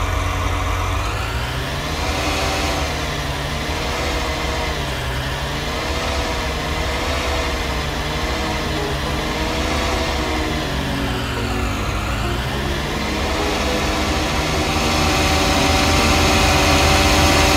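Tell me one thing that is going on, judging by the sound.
A tractor engine rumbles steadily, rising slightly in pitch as it speeds up.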